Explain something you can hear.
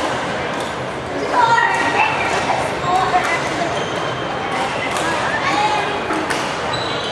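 Rackets strike a shuttlecock with sharp taps, echoing in a large hall.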